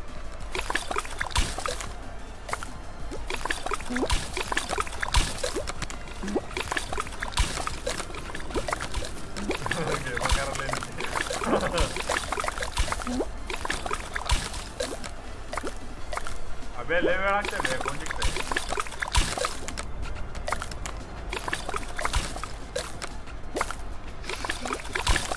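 Cartoonish thuds and pops sound as a character hops between tiles.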